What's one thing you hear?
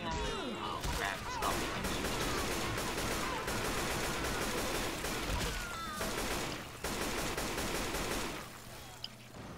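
A rifle fires rapid bursts.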